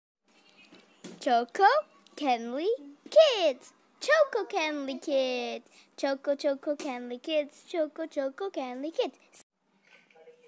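A young girl talks with animation close by, her voice rising and falling in a sing-song way.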